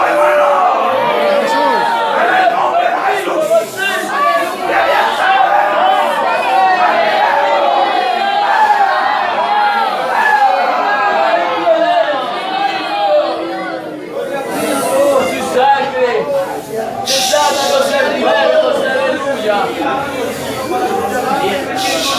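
A man speaks with animation to a room, his voice echoing slightly.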